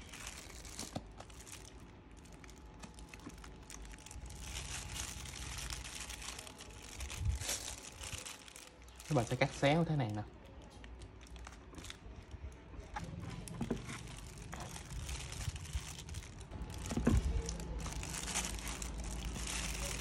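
A knife taps softly against a wooden cutting board as it slices.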